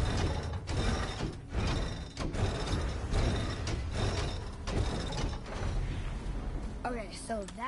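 A heavy mechanism rumbles as a large structure rises.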